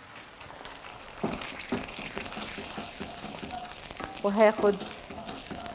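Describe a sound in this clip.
A wooden spoon scrapes and stirs sauce in a pan.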